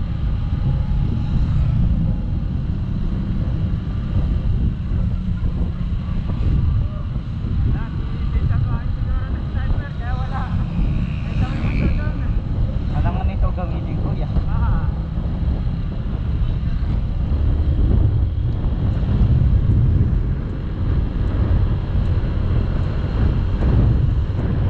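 Wind rumbles loudly against a moving scooter.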